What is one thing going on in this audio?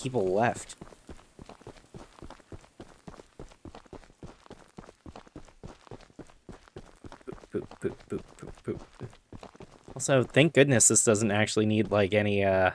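A young man talks loudly and with animation into a close microphone.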